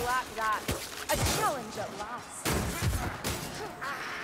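Blades strike and clash in a fight.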